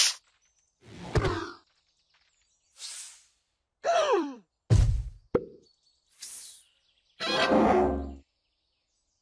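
Explosions boom in loud bursts.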